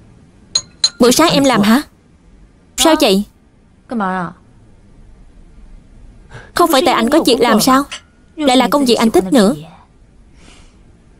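A young woman speaks with surprise nearby.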